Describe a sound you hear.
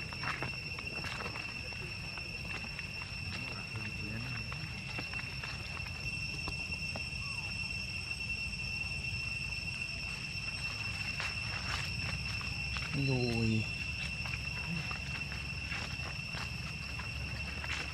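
A monkey's feet rustle through dry leaves.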